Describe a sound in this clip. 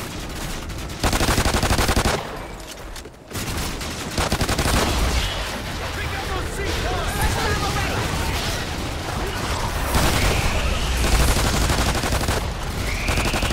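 Pistols fire in rapid, loud bursts.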